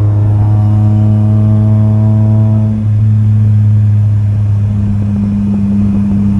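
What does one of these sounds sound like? A car engine drones steadily, heard from inside the car.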